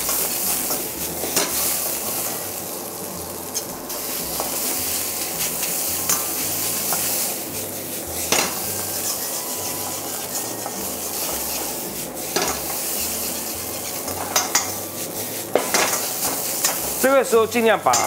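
Food sizzles and crackles in a hot wok.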